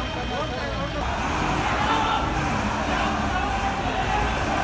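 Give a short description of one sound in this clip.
A crowd of men murmurs and talks at a distance.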